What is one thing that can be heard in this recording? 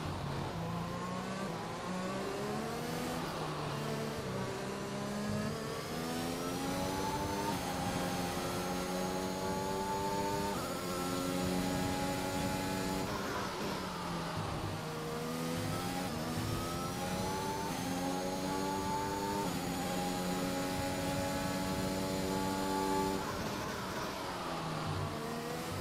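A racing car engine whines loudly, rising in pitch through each gear and dropping as it slows for corners.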